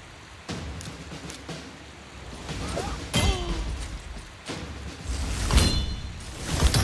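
Swords clash and strike in a game battle.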